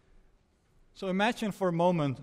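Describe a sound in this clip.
A man speaks with animation into a microphone in a large room.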